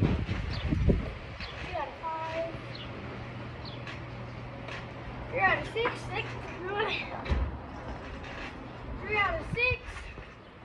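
A trampoline thumps and creaks as a child bounces on it.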